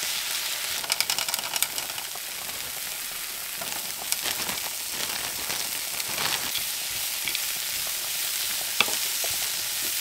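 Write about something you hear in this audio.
A wooden spatula stirs and scrapes food in a frying pan.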